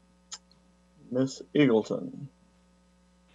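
An older man speaks briefly and calmly over an online call.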